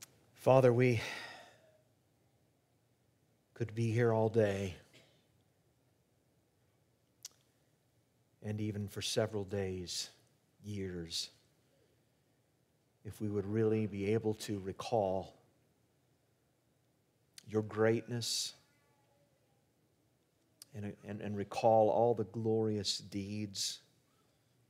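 A middle-aged man speaks calmly and deliberately into a microphone, with long pauses.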